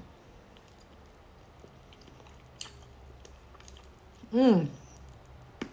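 A young woman slurps and chews food.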